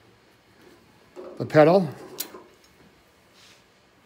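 A pedal clicks onto a metal pedal rod.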